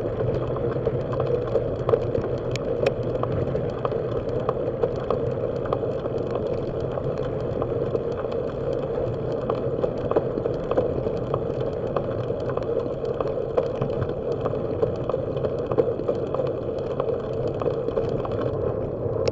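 Bicycle tyres hum along a paved road.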